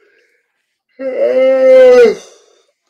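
A middle-aged man yawns loudly.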